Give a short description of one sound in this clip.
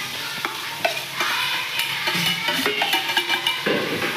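Chopped vegetables tumble from a metal bowl into a pan.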